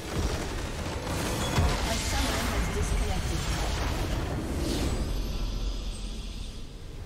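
A loud rumbling explosion roars and crackles.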